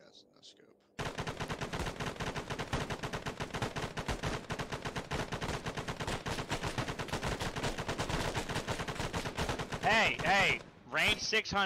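A machine gun fires long rapid bursts.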